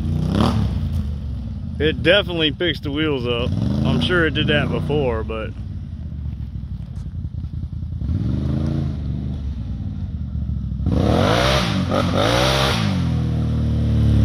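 A quad bike engine revs up and down as it approaches.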